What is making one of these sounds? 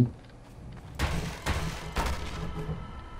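A crowbar smashes a wooden crate, with sharp cracking blows.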